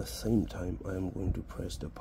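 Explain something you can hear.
Fingers press the side buttons of a phone with soft clicks.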